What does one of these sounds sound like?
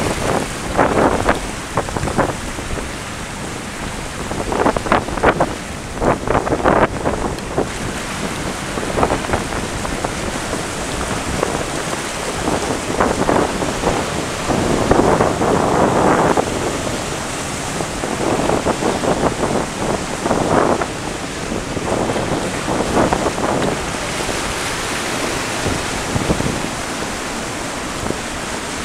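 Waves crash and wash over rocks nearby.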